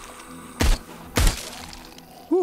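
A pistol fires two loud shots.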